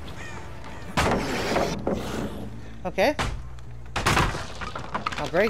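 Wooden boards crack and splinter as they are smashed.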